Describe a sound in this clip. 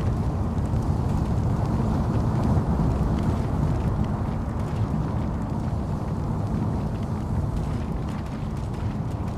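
A car engine rumbles steadily as it drives over rough ground.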